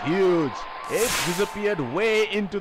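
Flames burst with a roaring whoosh.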